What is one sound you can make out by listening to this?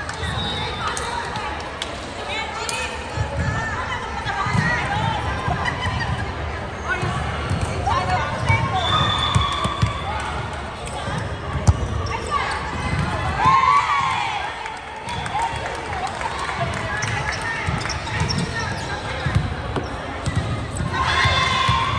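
Young women call out and chatter in a large echoing hall.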